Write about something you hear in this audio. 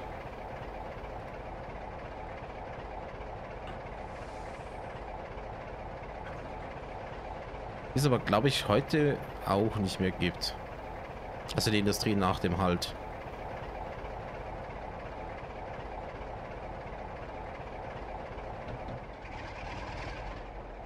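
A train engine hums and rumbles steadily.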